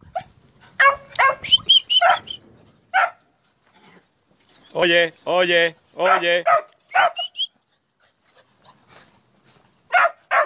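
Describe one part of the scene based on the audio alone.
Puppies yelp and whine.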